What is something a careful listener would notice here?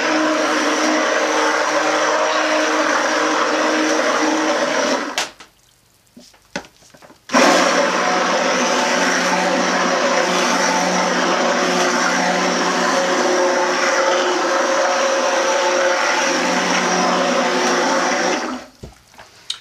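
A hand blender whirs loudly in liquid, stopping briefly and starting again.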